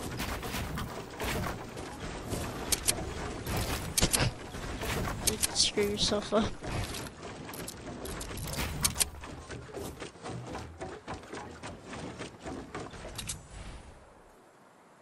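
Wooden building pieces clack and snap into place in quick bursts.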